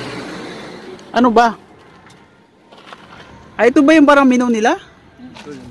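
A young woman speaks into a phone close by.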